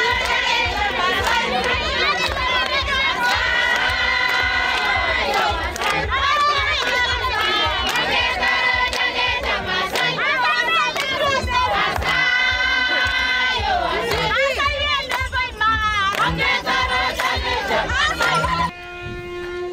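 A crowd of people claps hands in rhythm.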